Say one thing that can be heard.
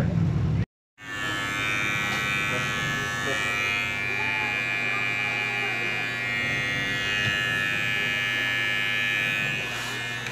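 An electric hair clipper buzzes steadily.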